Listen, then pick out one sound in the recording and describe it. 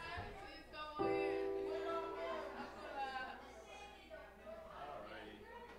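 A keyboard plays a held chord.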